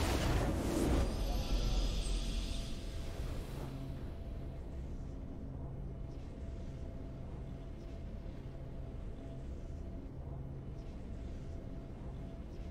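A triumphant game fanfare plays and then settles into soft music.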